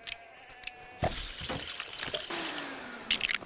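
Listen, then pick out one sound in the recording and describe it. A game building drops into place with a brief rumbling burst.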